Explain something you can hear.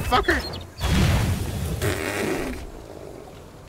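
A loud blast bursts with a rushing roar.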